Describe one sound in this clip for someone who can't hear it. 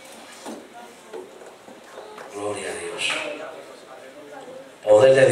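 A crowd of people sings and talks in a large echoing hall.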